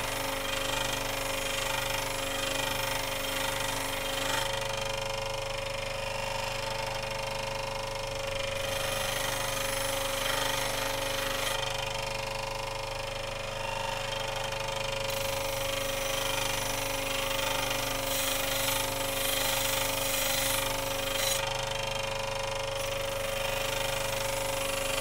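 A bench grinder motor hums steadily.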